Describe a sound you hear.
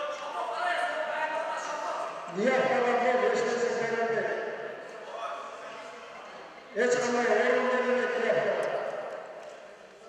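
A man shouts loudly in a large echoing hall.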